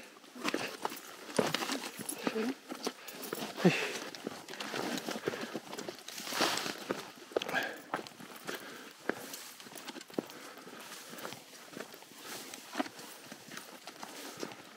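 Dry brush rustles and scrapes against clothing and a backpack.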